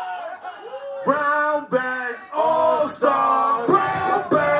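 A second young man sings loudly close by.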